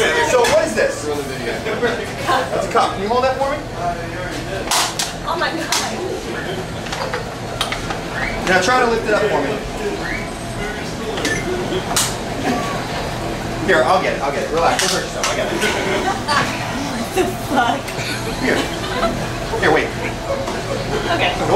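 A young woman talks and laughs.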